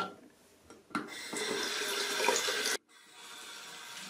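Water runs from a tap into a sink and splashes over hands.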